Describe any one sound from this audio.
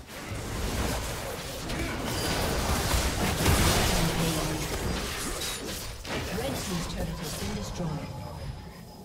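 Game spell effects whoosh and crackle in a fast fight.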